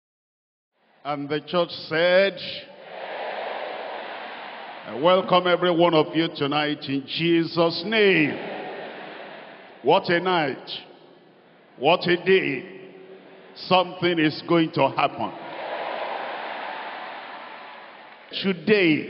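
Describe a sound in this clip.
A large crowd cheers and shouts in the distance.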